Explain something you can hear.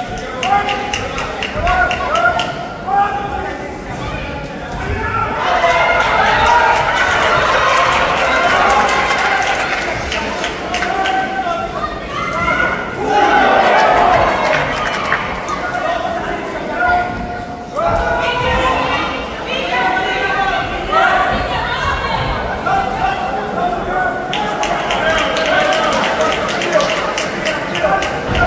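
A crowd shouts and cheers in a hall.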